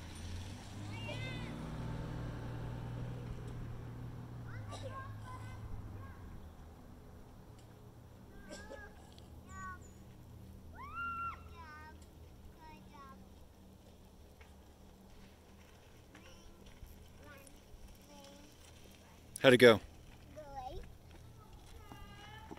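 Young children call out in high voices outdoors.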